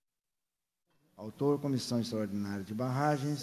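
An older man speaks calmly into a microphone, reading out.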